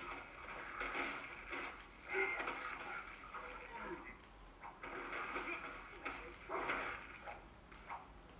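Game combat sounds clash and thud from a television speaker.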